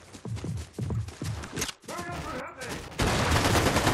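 Footsteps patter on stone steps in a game.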